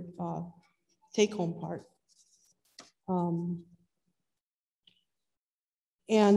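A woman sings into a microphone in a large echoing hall, in short held phrases.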